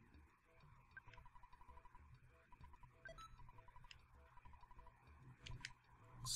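Short electronic blips chirp in a quick, even series.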